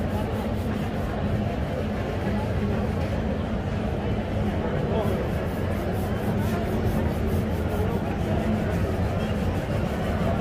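A brush swishes briskly over a leather shoe.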